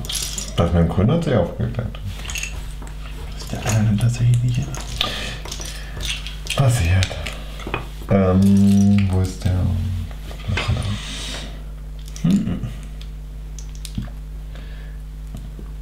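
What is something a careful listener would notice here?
Small plastic bricks rattle and click as hands sort through a pile.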